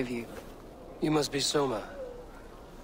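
A man speaks calmly in a deep voice.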